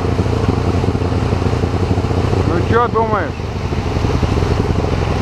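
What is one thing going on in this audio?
Water rushes and splashes steadily around a boat on a fast river.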